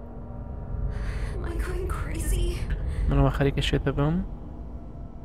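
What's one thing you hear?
A woman speaks anxiously.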